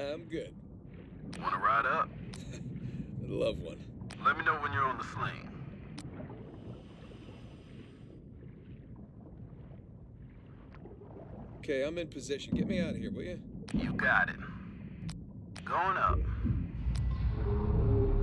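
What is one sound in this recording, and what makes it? A diver breathes out through a regulator, with bubbles gurgling underwater.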